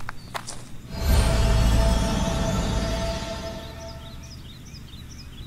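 A loud shimmering chime swells and then slowly fades.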